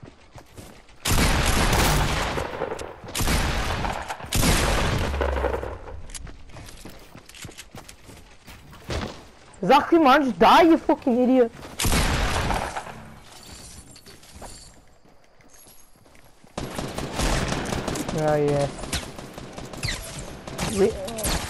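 Shotgun blasts boom in a video game.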